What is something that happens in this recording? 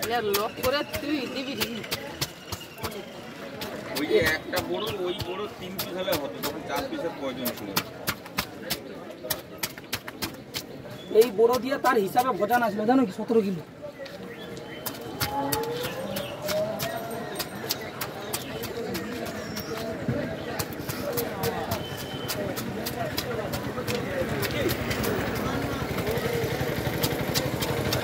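A knife scrapes scales off a fish with quick, rasping strokes.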